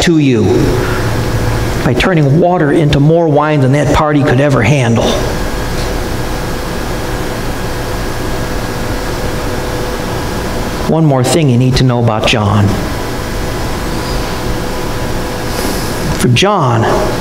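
An elderly man speaks with animation in a large room, heard from a distance.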